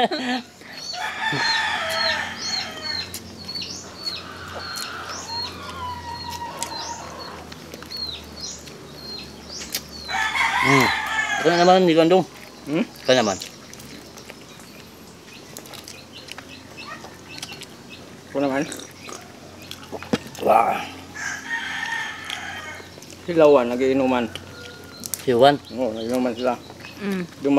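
People chew and smack their lips while eating with their hands close by.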